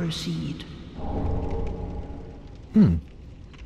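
A soft bright chime rings out and slowly fades.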